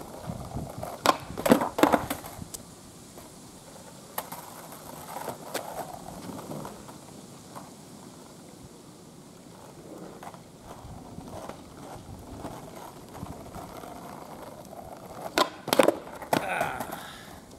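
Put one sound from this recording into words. A skateboard snaps and clatters against the pavement.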